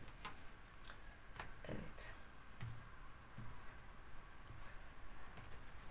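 Cards are laid down with soft taps.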